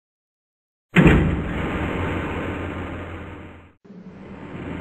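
A lift hums and rumbles steadily.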